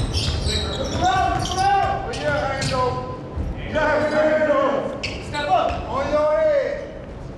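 Men shout to each other during play.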